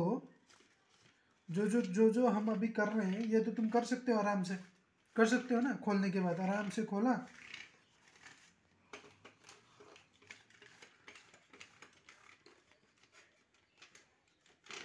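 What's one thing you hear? A cloth rubs and scrapes over plastic keys.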